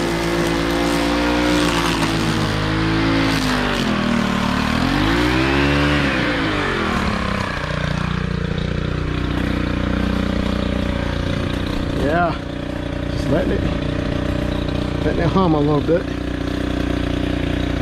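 A string trimmer engine hums steadily, its pitch rising and falling as the throttle changes.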